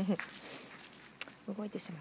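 A small dog's paws patter softly on gravel.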